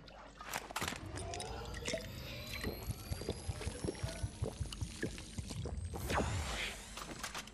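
A shield potion glugs and fizzes with a rising shimmer.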